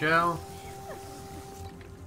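Explosive gel sprays with a soft hiss.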